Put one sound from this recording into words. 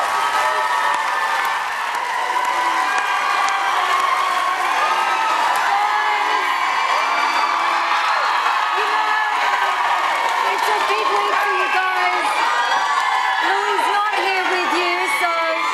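A large crowd cheers and applauds loudly in a big hall.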